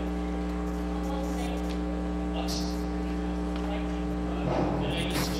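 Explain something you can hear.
An elderly woman speaks into a microphone over loudspeakers.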